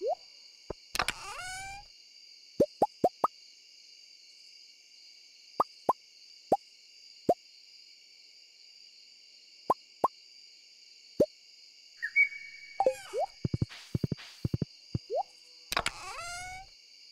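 A game menu opens and closes with a quick rustling chime.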